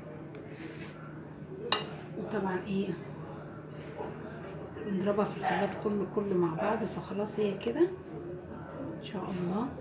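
A spoon scrapes and clinks against a glass bowl.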